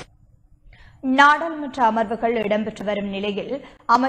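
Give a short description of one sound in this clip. A woman reads out the news clearly into a microphone.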